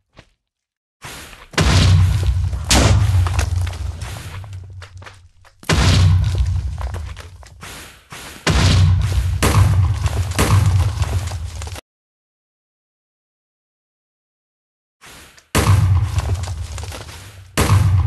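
Loud explosions boom again and again, each rumbling away.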